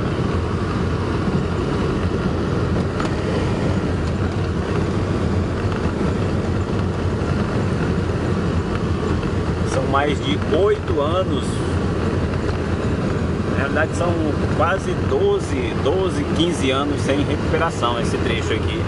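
Tyres roll and crunch over a rough dirt road.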